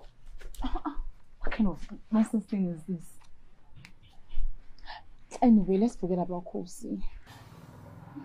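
A woman speaks emotionally, close by.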